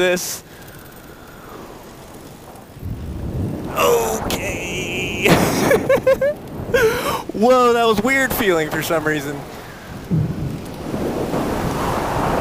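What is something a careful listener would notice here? Wind rushes steadily past outdoors.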